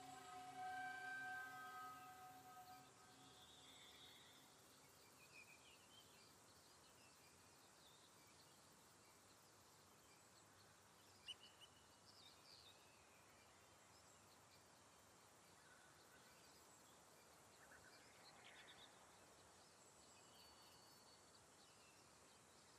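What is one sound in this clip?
Water trickles softly in a nearby stream.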